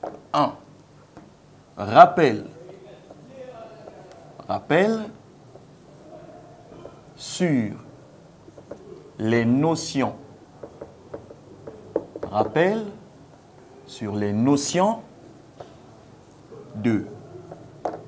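A man speaks calmly in short phrases with pauses, close by.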